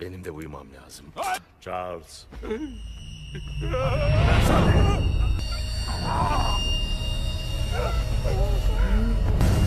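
An elderly man cries out in distress.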